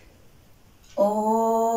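A woman chants a long, steady tone.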